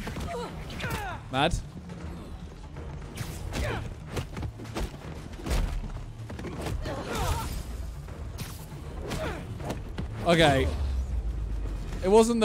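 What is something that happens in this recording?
Game explosions and fighting thuds crash and boom.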